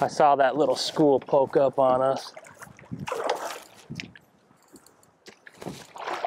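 Water splashes against a boat.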